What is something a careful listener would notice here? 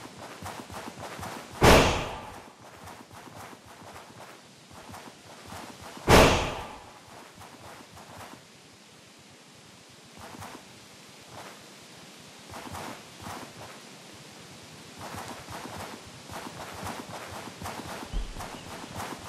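Light paws patter quickly through grass.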